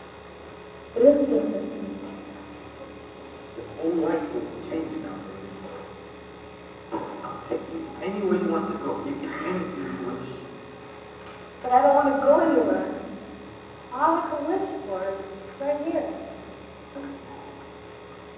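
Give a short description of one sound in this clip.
A young woman answers softly close by.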